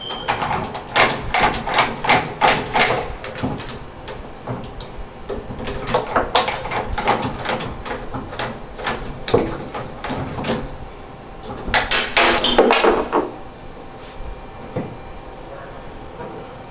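Metal parts click and scrape as a hand fits them onto pipe stems.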